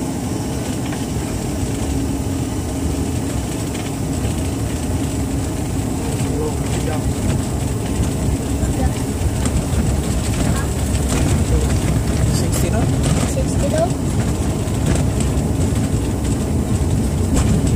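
Jet engines roar steadily from inside an airliner cabin, growing louder.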